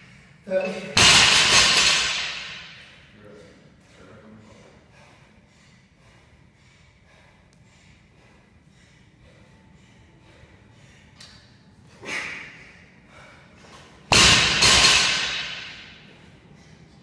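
A heavy barbell crashes down onto the floor, with the weight plates clanging and rattling.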